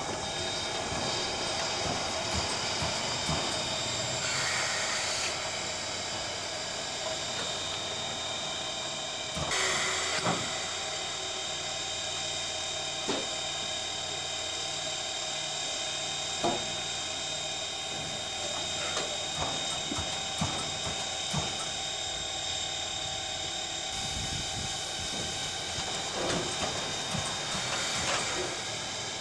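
Steam hisses steadily from a locomotive.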